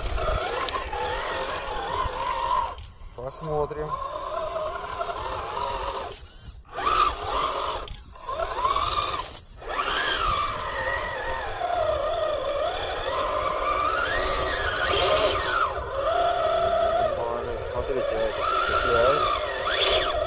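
A small electric motor whines, rising and falling in pitch as it revs.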